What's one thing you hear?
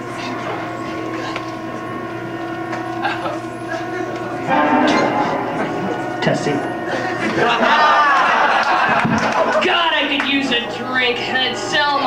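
A crowd of people chatters in a busy room.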